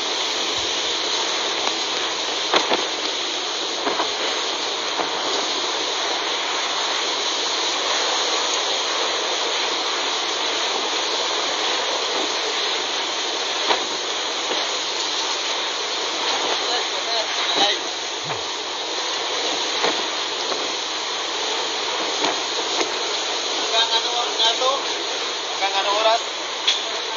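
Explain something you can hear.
Heavy rain pours down hard and hisses.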